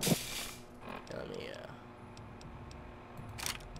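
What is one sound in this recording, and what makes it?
Soft clicks tick as menu items are scrolled through.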